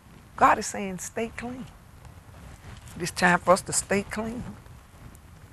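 An elderly woman speaks calmly and warmly into a microphone, close by.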